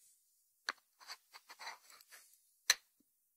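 Fingers rub and handle a ceramic dish with a soft scraping.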